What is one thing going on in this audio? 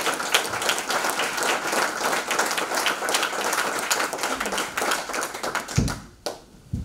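A crowd of people applauds in a room.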